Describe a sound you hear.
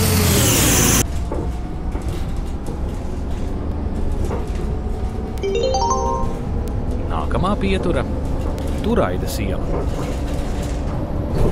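A bus engine drones steadily while driving.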